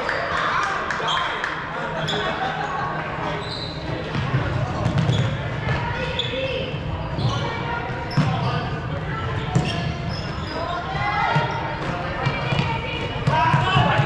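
Sneakers squeak sharply on a wooden floor, echoing in a large hall.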